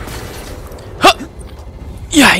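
Loud impacts and blasts burst out from a video game.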